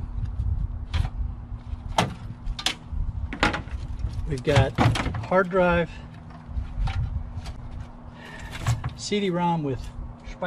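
A pry bar scrapes and knocks against metal.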